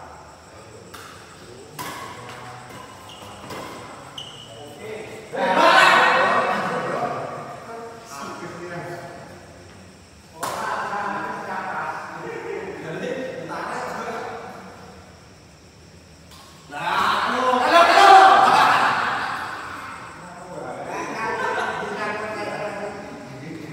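Rackets sharply strike a shuttlecock back and forth in an echoing hall.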